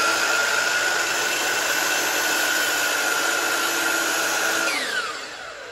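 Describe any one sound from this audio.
A power miter saw whines loudly at full speed.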